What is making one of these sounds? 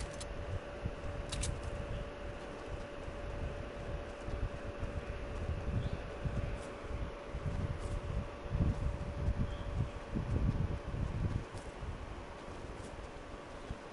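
Footsteps run through grass in a video game.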